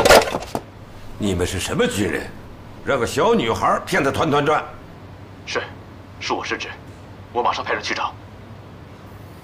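An elderly man speaks gravely into a telephone.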